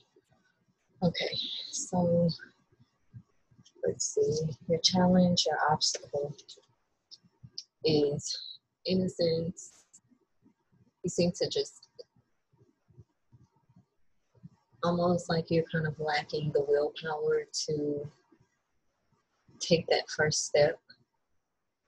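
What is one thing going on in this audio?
A young woman speaks calmly and closely into a microphone, with pauses.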